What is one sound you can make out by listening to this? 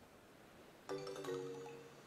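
A short bright jingle plays.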